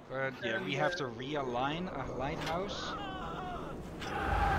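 A young man talks loudly and with animation, close to a microphone.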